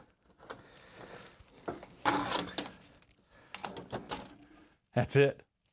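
Metal parts clatter and scrape as they are handled.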